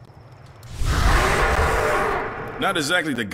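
A burst of steam hisses and rumbles.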